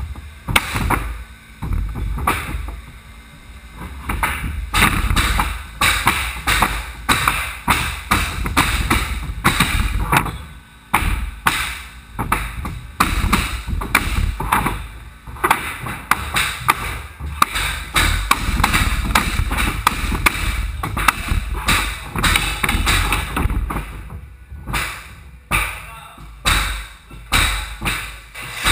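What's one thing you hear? A flooring nailer bangs nails into wooden boards again and again.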